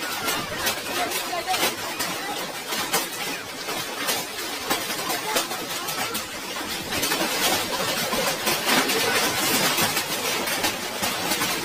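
Heavy hail pelts down and clatters on hard surfaces.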